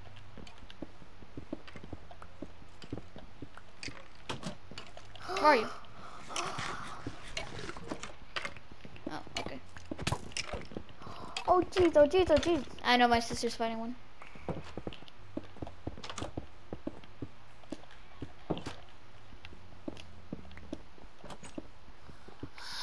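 A pick taps and chips at stone in quick, dry knocks.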